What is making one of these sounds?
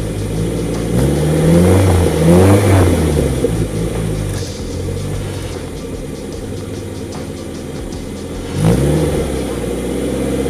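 A car engine revs up and down briefly.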